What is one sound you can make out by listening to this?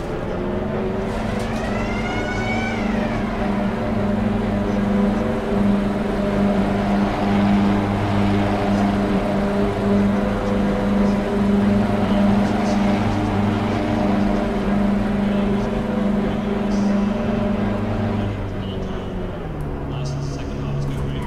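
A race car engine drones steadily at a held speed, then drops to a lower idle near the end.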